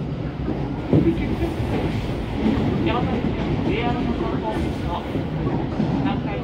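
A passing train rushes by close alongside.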